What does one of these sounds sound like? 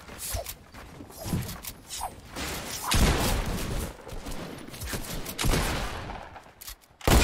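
Game building pieces clack and thud into place.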